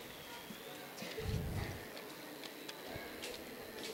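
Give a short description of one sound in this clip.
A young girl speaks softly into a microphone, heard through a loudspeaker.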